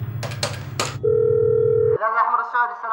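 A telephone line gives a steady ringing tone.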